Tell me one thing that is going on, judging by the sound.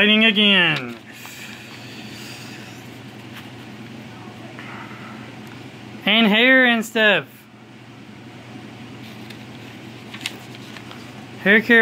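Thin magazine pages rustle and flip as they are turned by hand.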